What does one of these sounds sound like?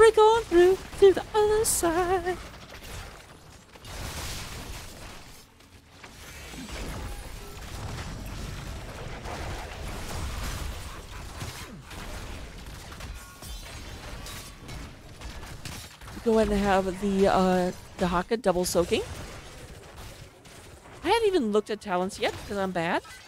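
Magic blasts and weapon strikes crackle and whoosh in a busy fight.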